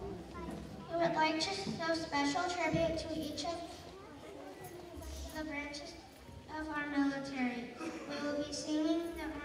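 A choir of children sings together.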